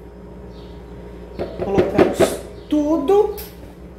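A spatula scrapes and taps inside a plastic bowl.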